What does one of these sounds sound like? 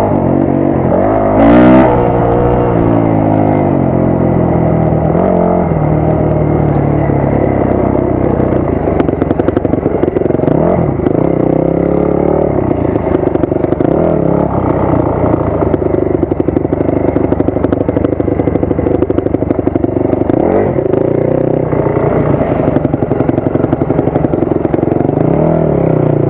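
A dirt bike engine revs up and down loudly close by.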